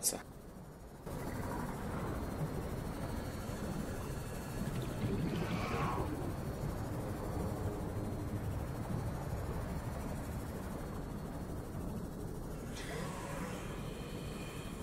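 A small underwater vehicle's motor hums steadily as it moves through water.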